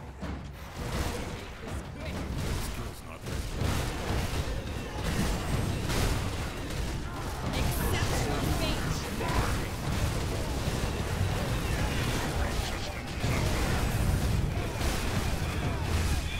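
Magic spells crackle and burst in rapid succession.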